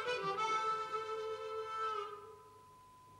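Harmonicas play a sustained chord together.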